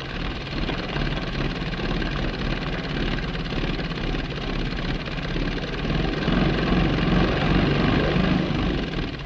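An old car engine rumbles and sputters close by.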